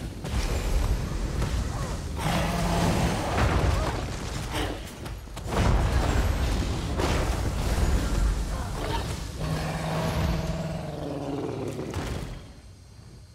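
Magic blasts and weapon strikes crash loudly in a fierce fight.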